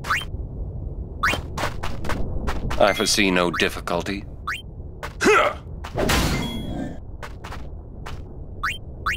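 Short rising menu blips chirp now and then.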